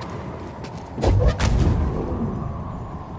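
A heavy metal object swings past with a loud whoosh.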